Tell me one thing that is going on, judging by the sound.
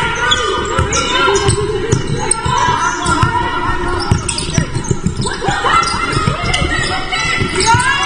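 Young women players call out and shout across an echoing hall.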